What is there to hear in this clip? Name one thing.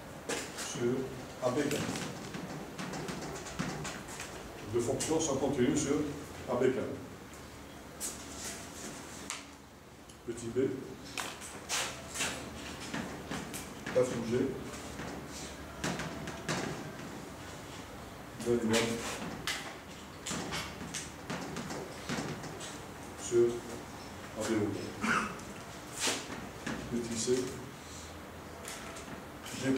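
A man lectures calmly into a microphone.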